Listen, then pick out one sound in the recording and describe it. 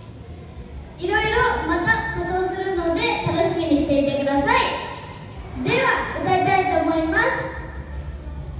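A young girl sings loudly into a microphone, heard through loudspeakers.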